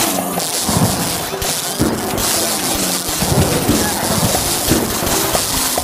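Cartoon plants rapidly fire pea shots with soft popping sounds.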